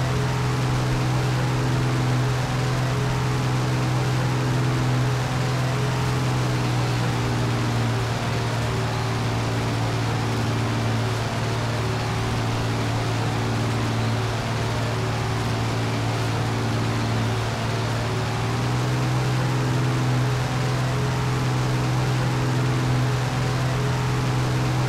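Wind rushes past an aircraft.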